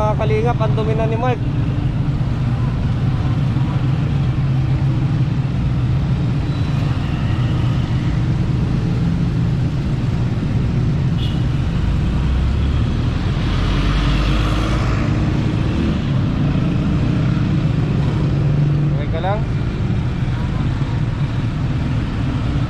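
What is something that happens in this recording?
A young man speaks quietly up close.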